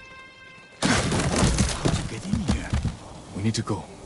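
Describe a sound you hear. Wooden bars crash and clatter as a cage door is forced open.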